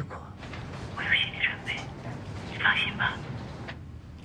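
A middle-aged woman answers, heard through a phone.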